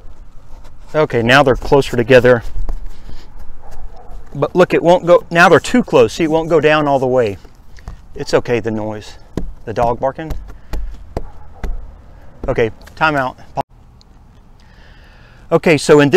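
A man speaks with animation close by, outdoors.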